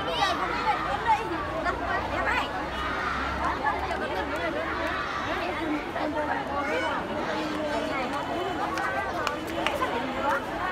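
A large crowd of children chatters and calls out outdoors.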